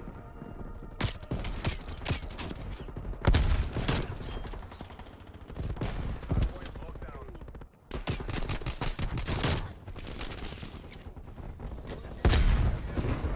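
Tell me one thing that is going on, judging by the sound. Sniper rifle shots crack loudly.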